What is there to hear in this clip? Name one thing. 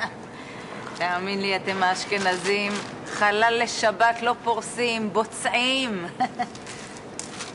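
A woman speaks cheerfully.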